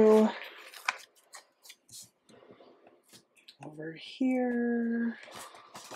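Paper rustles softly as a sticker is peeled and pressed down.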